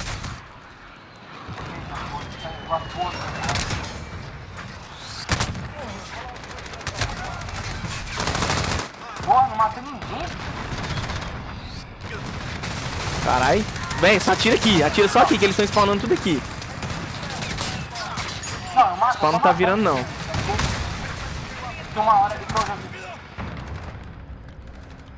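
Rapid gunfire rings out in loud bursts.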